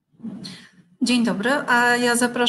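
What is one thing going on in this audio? A woman speaks calmly and close into a microphone.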